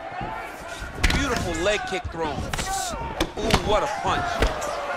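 Punches land with sharp, heavy thuds.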